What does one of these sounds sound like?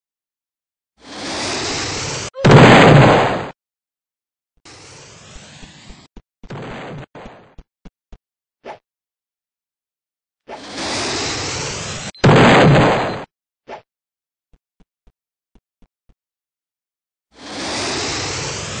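An explosion bursts with a loud roaring blast, over and over.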